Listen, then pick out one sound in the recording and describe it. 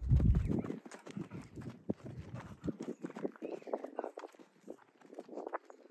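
A horse trots with hooves thudding on dry ground.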